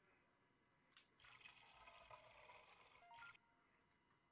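Water pours from a cooler into a cup.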